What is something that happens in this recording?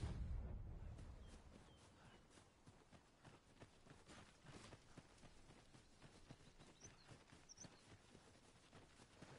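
Footsteps tread steadily along a grassy path.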